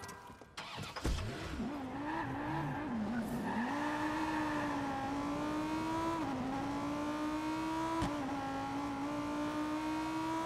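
A car engine starts and revs, then hums steadily as the car drives.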